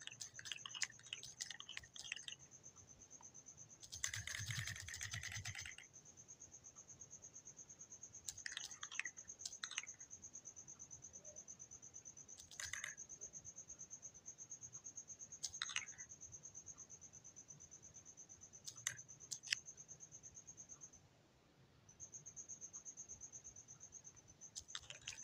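Quick, light footsteps patter steadily as a small figure runs.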